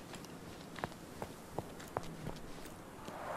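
Footsteps tap on a hard path.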